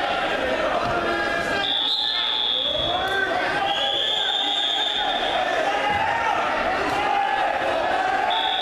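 A crowd of people shouts and cheers in a large echoing gym.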